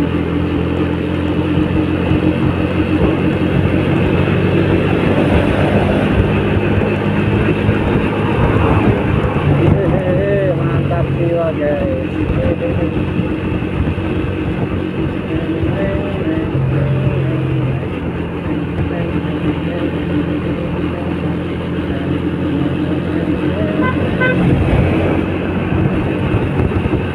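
Wind rushes past while riding.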